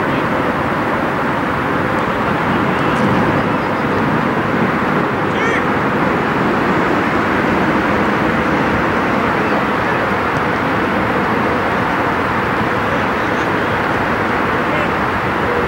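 Men shout to each other across an open field in the distance.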